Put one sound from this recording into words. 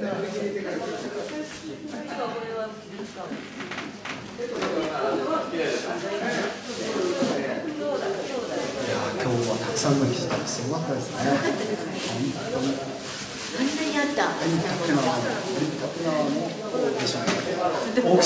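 A man talks with animation through a microphone over loudspeakers.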